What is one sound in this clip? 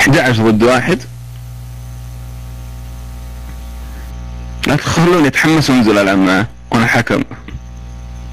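A man speaks in short bursts with animation through a microphone.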